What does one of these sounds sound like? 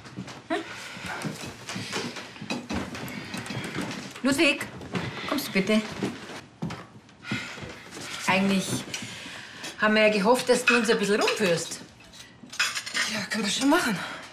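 A young woman speaks tensely.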